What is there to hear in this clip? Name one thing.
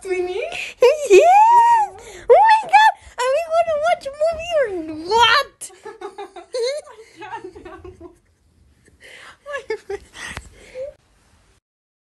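A young woman laughs and squeals close by.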